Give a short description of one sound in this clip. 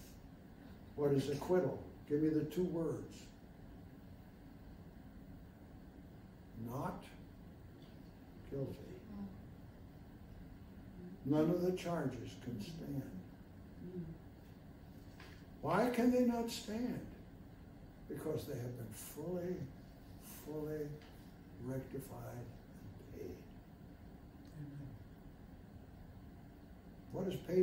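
An elderly man speaks calmly and deliberately, with pauses between phrases.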